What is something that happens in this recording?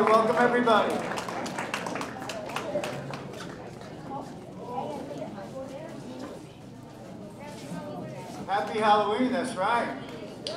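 An acoustic guitar strums a lively tune through loudspeakers.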